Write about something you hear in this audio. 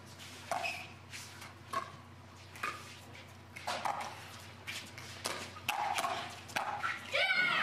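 Paddles pop sharply against a plastic ball in a quick rally, heard outdoors.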